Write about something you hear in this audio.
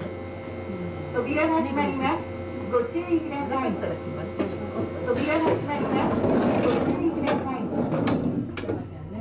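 A man calls out clearly nearby.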